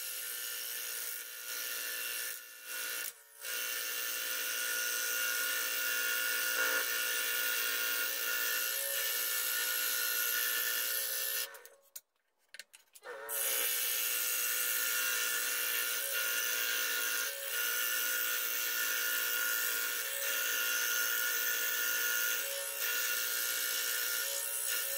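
A scroll saw blade chatters as it cuts through wood.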